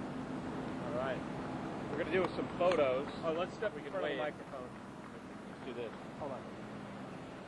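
A man speaks with animation into a microphone outdoors.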